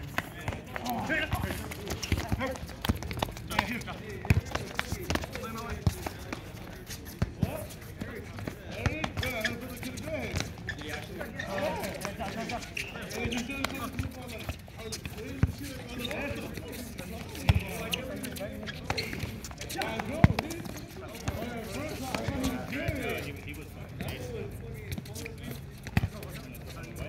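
A ball thuds as players kick it on a hard court.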